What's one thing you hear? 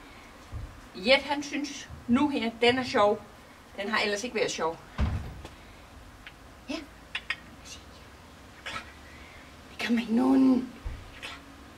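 A woman talks to a dog in a high, coaxing voice nearby.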